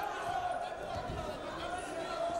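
Wrestlers thud onto a mat.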